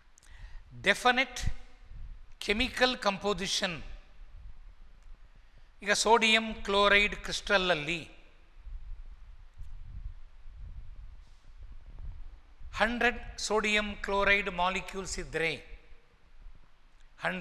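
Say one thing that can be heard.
An older man speaks calmly and clearly into a clip-on microphone, with pauses between phrases.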